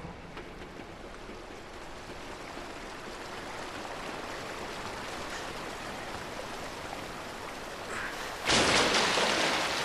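Sewer water rushes.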